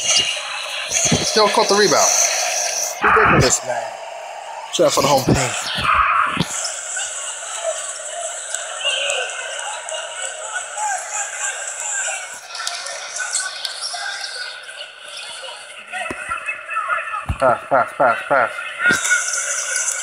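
Sneakers squeak sharply on a hardwood court.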